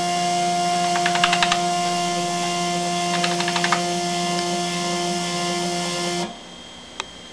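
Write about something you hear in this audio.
An electric motor hums steadily, then stops.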